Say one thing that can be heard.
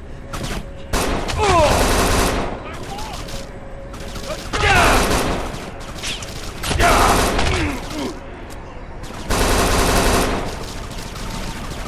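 A submachine gun fires in short, loud bursts.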